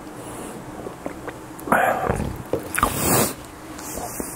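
A man sips a drink and swallows.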